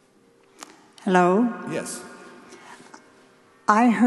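A middle-aged man speaks with animation through a microphone in a large echoing room.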